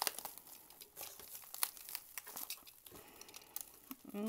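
A knife blade slices through bubble wrap.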